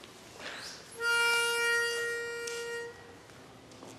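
A pitch pipe sounds a single steady note.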